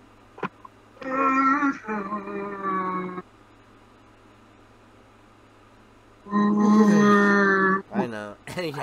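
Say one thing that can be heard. A young man wails loudly in long, drawn-out notes close to a microphone.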